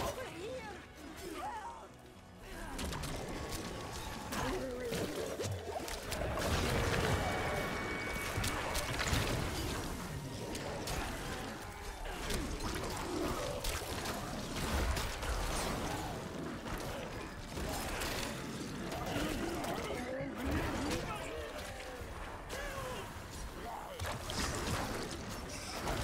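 Clashing blows and impacts ring out rapidly as creatures fight.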